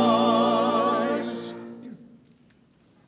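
A congregation sings a hymn in an echoing hall, ending on a held chord.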